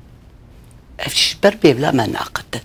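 An older woman speaks with animation, close by.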